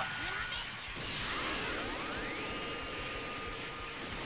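An energy blast roars steadily.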